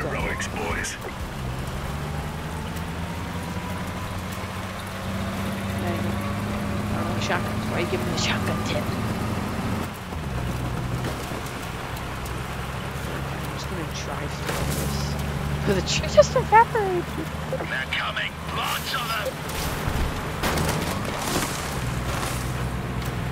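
A vehicle engine rumbles steadily as it drives over rough ground.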